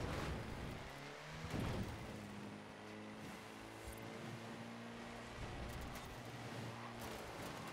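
Tyres hiss and crunch over snow and gravel.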